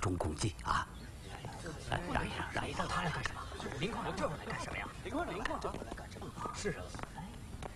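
A crowd of men murmurs and chatters outdoors.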